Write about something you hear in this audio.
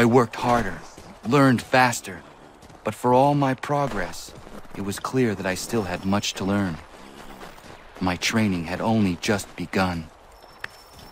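A young man narrates calmly, close to the microphone.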